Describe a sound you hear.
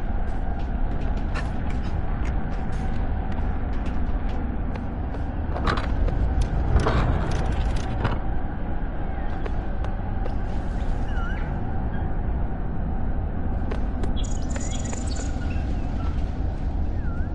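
Light footsteps patter quickly on stone.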